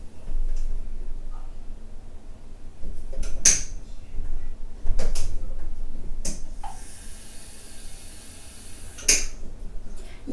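Small plastic objects knock and clatter as they are handled.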